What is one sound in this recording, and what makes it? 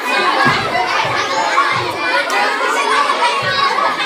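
A man calls out loudly over the crowd.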